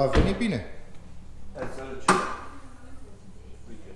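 A car hood is lifted open with a thud.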